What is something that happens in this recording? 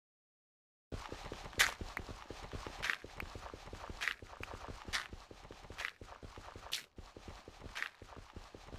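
A pickaxe chips at stone with rapid sharp knocks.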